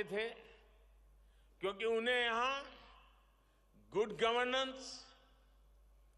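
An elderly man speaks slowly and deliberately into a microphone, with pauses between phrases.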